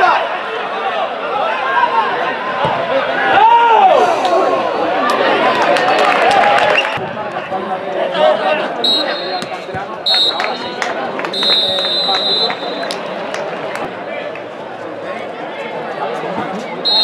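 A crowd of spectators shouts and calls out nearby, outdoors.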